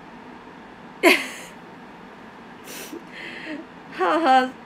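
A young woman giggles softly.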